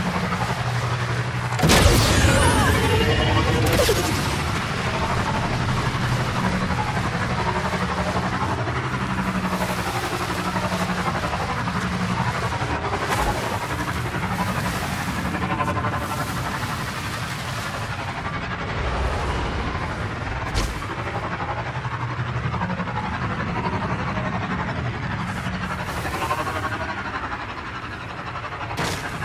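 A motorbike engine hums steadily as it rides.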